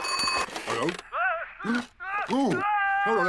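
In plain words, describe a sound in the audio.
A man mumbles into a telephone.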